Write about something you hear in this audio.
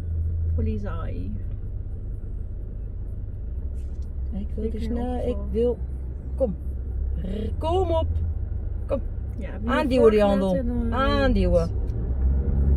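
A middle-aged woman speaks calmly inside a car, close by.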